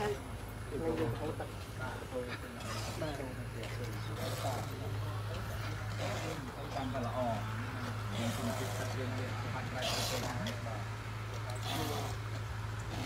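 Several men talk casually nearby, outdoors.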